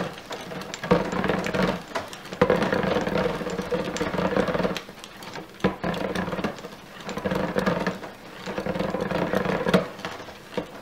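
A stick blender whirs in bursts through thick liquid.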